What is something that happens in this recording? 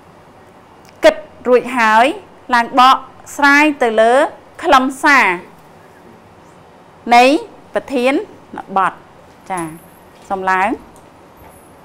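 A middle-aged woman speaks clearly and calmly into a microphone.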